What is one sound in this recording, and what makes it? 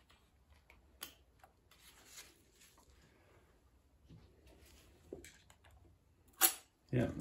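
Metal plates clink softly as they are lifted out.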